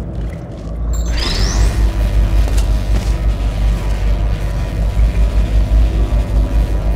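A low electric hum pulses rapidly and steadily.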